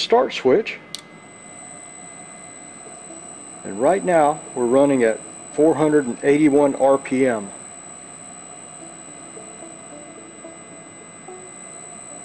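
An electric motor fed by an inverter drive runs with a high, steady whine.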